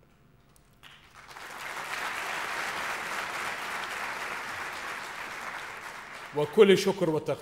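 A large crowd applauds.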